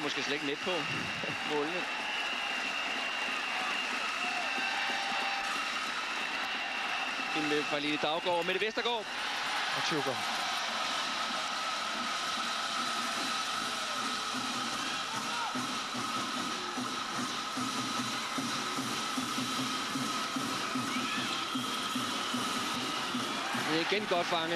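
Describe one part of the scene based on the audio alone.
A large crowd roars and cheers steadily in a big echoing arena.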